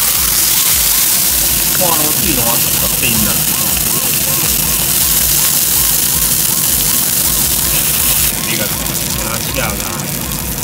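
Meat sizzles loudly on a hot griddle.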